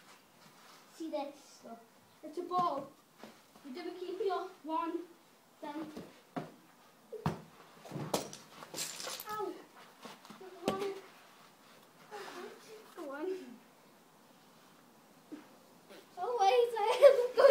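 A young boy talks with animation, close by, outdoors.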